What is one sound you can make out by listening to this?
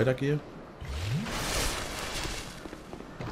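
A fiery burst whooshes.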